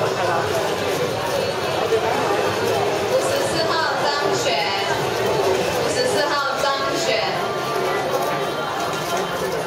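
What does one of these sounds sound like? A puzzle cube clicks and clatters as it is quickly turned.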